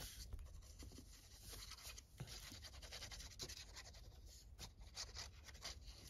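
A glue stick rubs across paper with a soft scraping.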